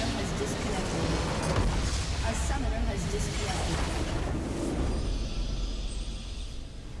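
Loud game battle effects crash and boom.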